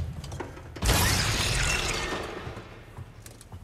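A heavy stone object grinds and scrapes as it shifts.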